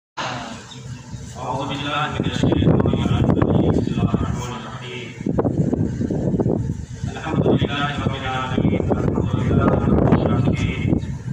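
A man recites in a chanting voice through a microphone and loudspeaker, in an echoing room.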